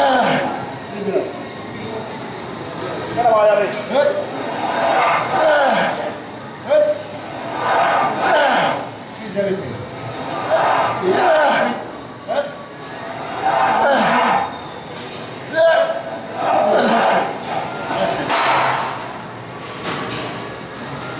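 A man shouts encouragement close by.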